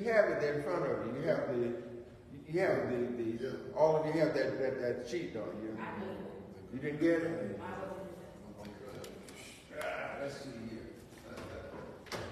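An older man speaks with animation, moving farther away partway through.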